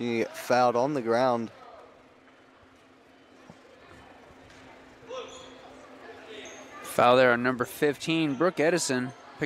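A basketball bounces on the court floor.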